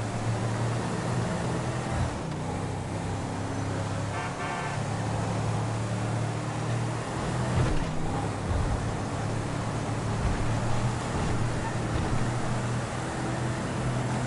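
Tyres roar on the road surface.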